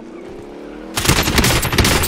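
Rifle shots crack loudly in quick succession.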